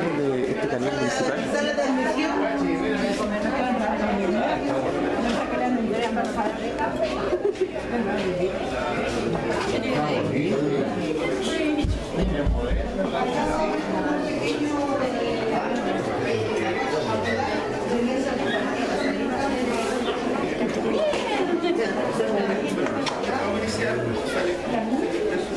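A crowd of men and women chatter all around, close by, in a room with some echo.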